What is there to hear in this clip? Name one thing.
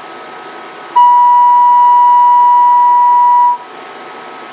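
A loud, steady electronic test tone sounds, then stops abruptly.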